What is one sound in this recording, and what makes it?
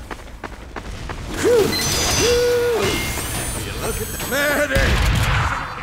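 A machine assembles itself with electronic beeps and mechanical whirring.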